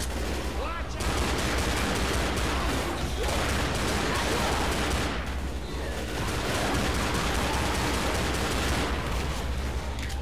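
Pistols fire in rapid bursts.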